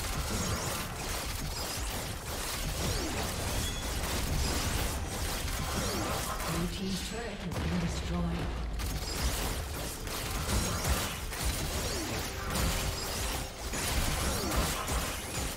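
Game sound effects of spells and hits crackle and clash rapidly.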